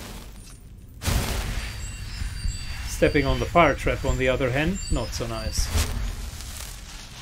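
A magic spell crackles and hums loudly.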